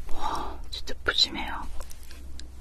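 A young woman speaks softly close to a microphone.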